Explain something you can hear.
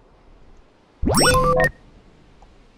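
A short electronic chime sounds as a game menu opens.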